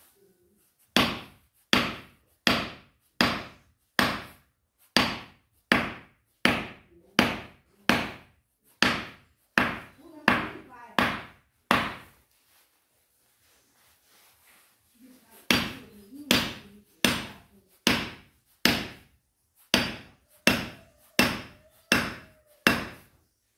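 A hammer strikes a metal chisel into wood in a steady rhythm of sharp knocks.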